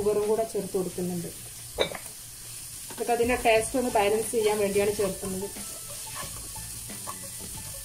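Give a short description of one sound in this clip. A spatula scrapes and stirs vegetables in a pan.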